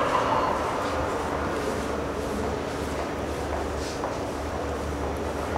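A rat scrabbles and climbs on a wire cage, rattling it softly.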